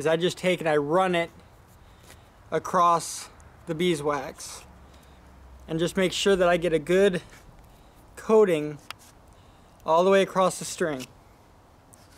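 A young man talks calmly and close by, in short phrases.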